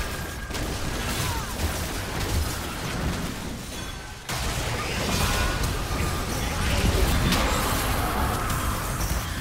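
Game abilities hit with sharp bursts.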